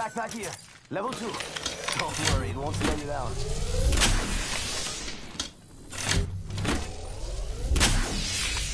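A shield cell charges with an electric crackle and hum.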